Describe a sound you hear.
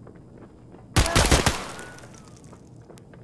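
A rifle fires a short, rapid burst at close range, with a ringing echo afterwards.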